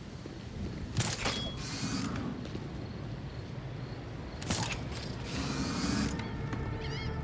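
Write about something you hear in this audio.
A grappling line whooshes and snaps taut.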